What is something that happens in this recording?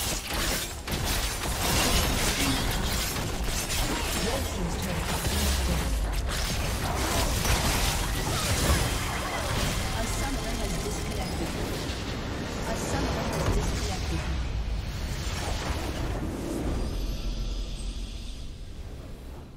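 Magic blasts and clashing weapons crackle and boom in a busy video game battle.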